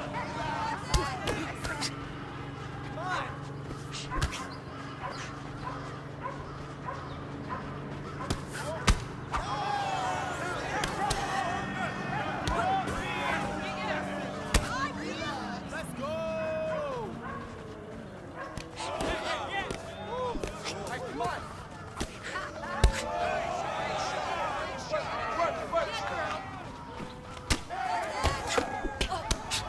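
Punches thud against a body in sharp blows.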